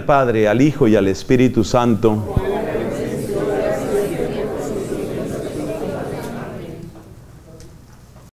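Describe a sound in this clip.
A man speaks slowly and clearly into a microphone in an echoing room.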